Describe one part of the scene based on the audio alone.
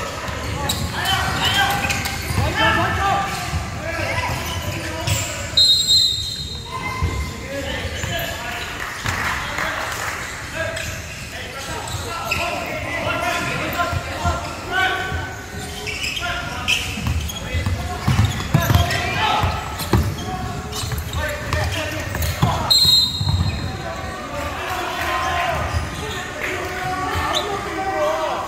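Young players shout and call out across a large echoing hall.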